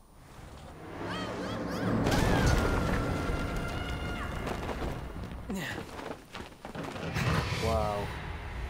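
A truck crashes down with a loud rumbling roar.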